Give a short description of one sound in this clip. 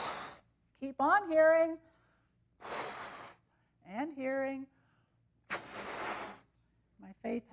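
A woman blows hard into a balloon in short puffs.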